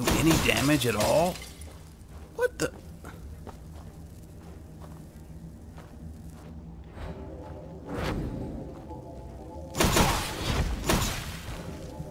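A magic spell crackles and hums in bursts.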